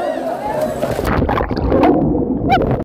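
Water rushes and bubbles as someone plunges under the surface.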